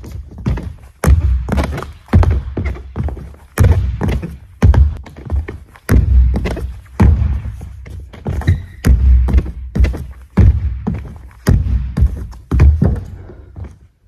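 Feet thump on a wooden floor as a person jumps and lands repeatedly, echoing in a large hall.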